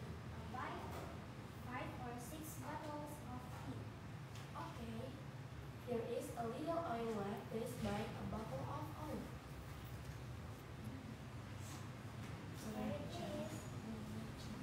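Two young girls talk with each other nearby.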